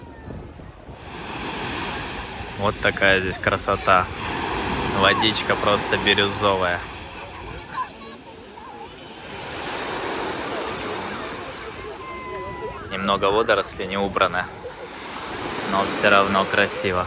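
Waves wash and break steadily onto a pebbly shore.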